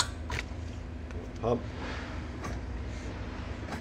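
A wrench clicks against a metal bolt.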